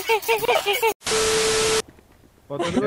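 Loud static hisses briefly.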